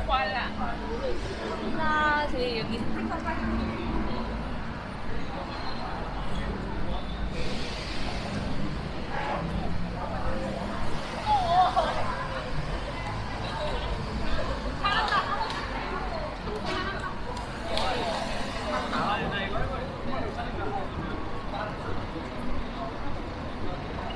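Men and women chat in passing on a busy street.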